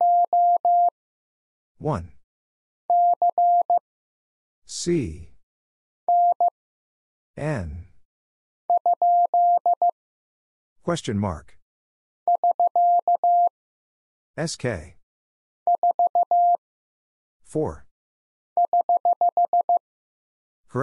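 A telegraph key taps out short and long beeps of Morse code in bursts.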